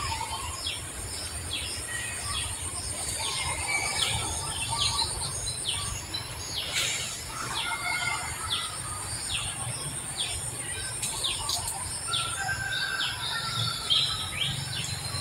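A baby monkey suckles softly.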